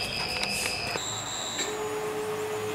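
A printer gives a short electronic beep.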